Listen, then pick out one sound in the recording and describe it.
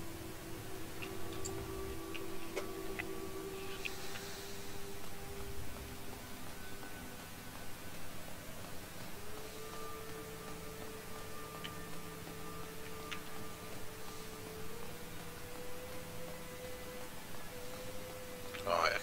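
Footsteps walk steadily over stone floors.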